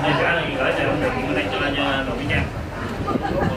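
A man speaks formally into a microphone, heard through a loudspeaker.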